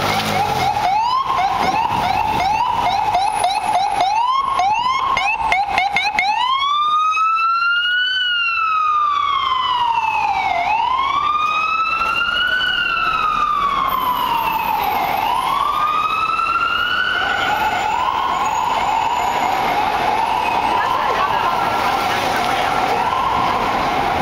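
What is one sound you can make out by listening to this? City traffic rumbles steadily.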